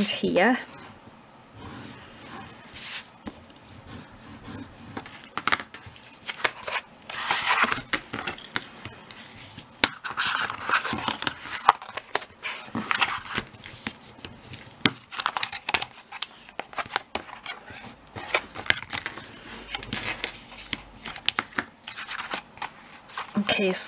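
Paper rustles and slides as hands handle card.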